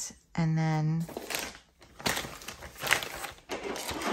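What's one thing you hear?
A plastic mailer bag crinkles and rustles as it is handled.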